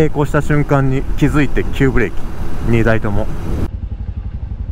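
A motorcycle engine roars and revs hard.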